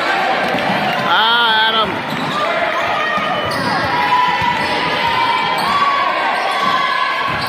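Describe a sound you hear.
A crowd of spectators murmurs and calls out in an echoing hall.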